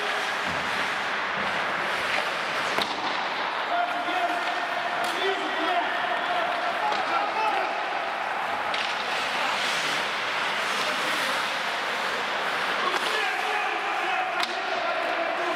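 Hockey sticks clack against a puck now and then.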